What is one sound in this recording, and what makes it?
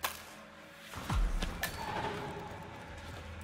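Clothes rustle as a body is stripped.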